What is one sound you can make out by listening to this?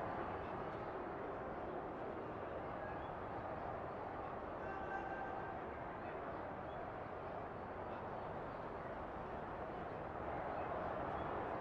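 A large crowd murmurs and cheers steadily in a big open stadium.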